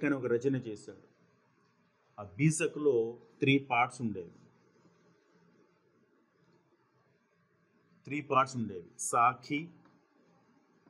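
A man speaks clearly and calmly, close by, as if explaining.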